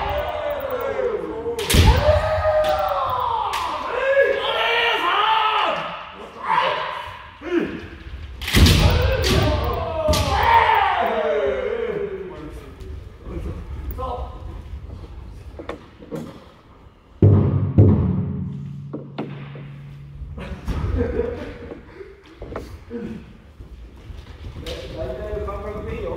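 Young men shout loud, drawn-out cries that echo through a large hall.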